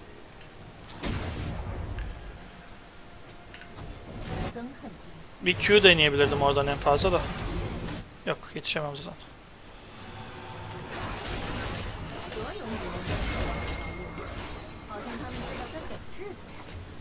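Game sound effects of spells and blows play in bursts.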